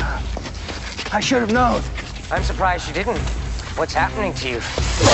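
A man speaks in a low, menacing voice close by.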